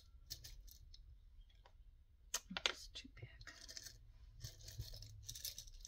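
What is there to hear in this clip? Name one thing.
Buttons rattle and clink inside a glass jar.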